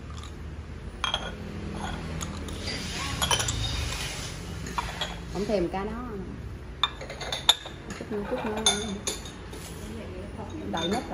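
Ceramic cups clink as they are set down on a stone tabletop.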